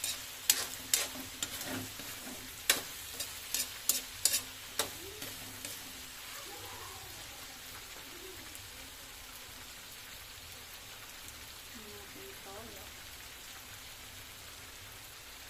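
Food sizzles gently in a hot pan.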